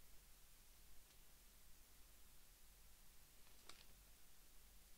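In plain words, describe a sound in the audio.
Newspaper pages rustle softly close by.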